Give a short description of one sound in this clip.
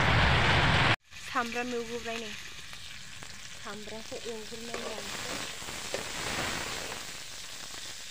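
Food sizzles and fries in a pan.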